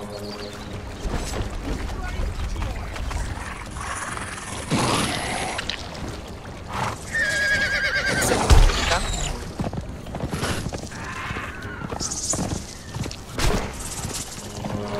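A horse's hooves thud steadily as it gallops.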